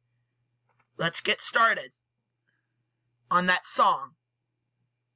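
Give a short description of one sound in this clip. A teenage boy speaks briefly and casually, close to a microphone.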